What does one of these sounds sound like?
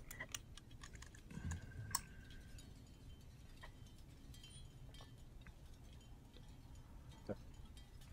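A porcelain cup clinks softly as it is handled.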